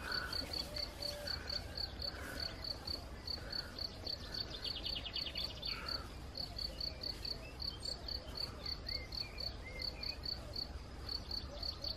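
Wind blows across open grassland.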